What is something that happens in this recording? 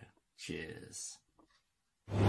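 A middle-aged man speaks briefly and cheerfully, close to the microphone.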